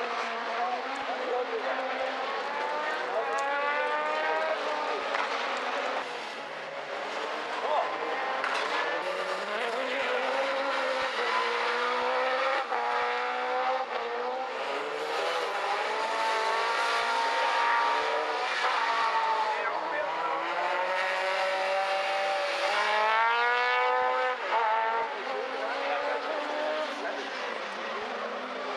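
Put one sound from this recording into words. Racing car engines roar and rev up and down.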